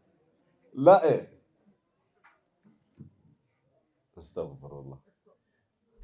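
A man speaks into a microphone in short, calm phrases with pauses.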